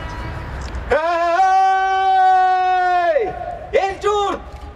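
A woman sings long held notes through a loudspeaker outdoors.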